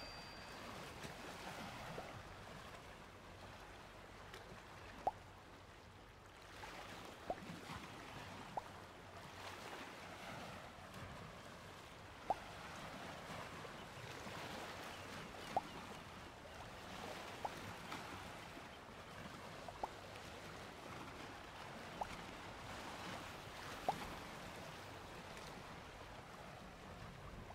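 Wind blows steadily over open ground.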